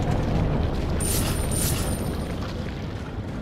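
A bright, shimmering chime rings out as a treasure chest opens.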